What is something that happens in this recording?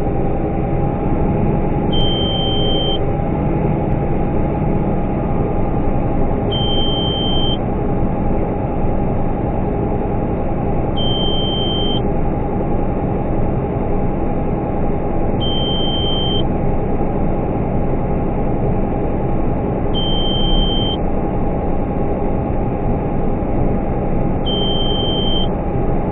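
A combine harvester's engine drones steadily from inside the cab.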